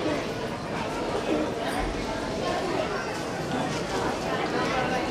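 A crowd of men murmur and chatter in a large echoing hall.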